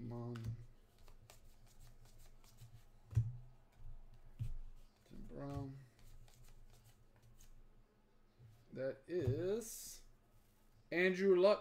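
Trading cards rustle and flick as they are shuffled by hand.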